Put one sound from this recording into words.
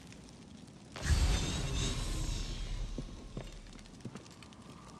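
A torch flame crackles and roars.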